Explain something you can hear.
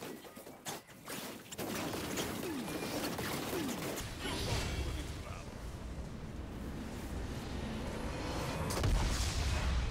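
Game spells and weapon blows crackle and clash in quick succession.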